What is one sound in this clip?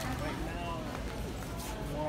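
Flip-flops slap on a hard floor.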